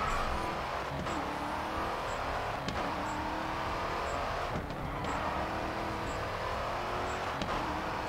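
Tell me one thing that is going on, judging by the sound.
A car engine roars loudly as it accelerates, with short dips at each gear change.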